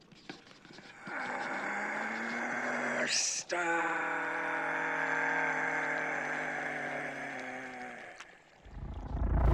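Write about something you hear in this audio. An elderly man lets out a long, eerie, wavering moan.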